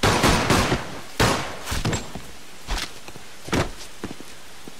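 Pistol shots crack sharply, several in quick succession.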